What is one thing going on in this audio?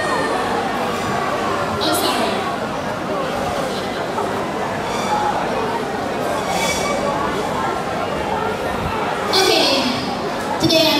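A woman speaks with animation through a microphone and loudspeakers in an echoing hall.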